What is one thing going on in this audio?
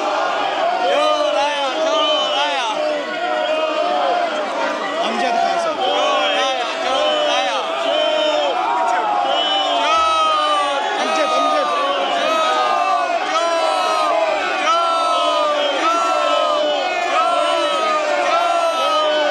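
A crowd of men chant loudly in unison in a large echoing hall.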